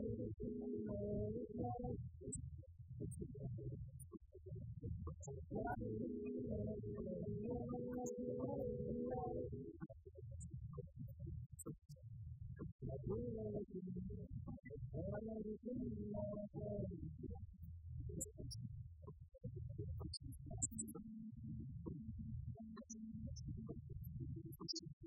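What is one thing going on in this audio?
Electric guitars play loudly.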